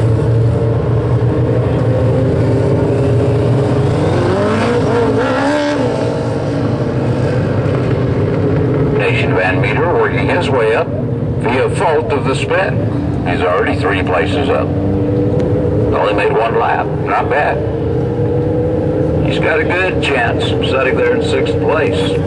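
Race car engines roar and drone around a dirt track outdoors.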